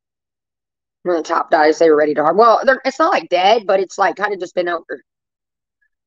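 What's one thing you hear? A woman speaks with animation, close to a microphone.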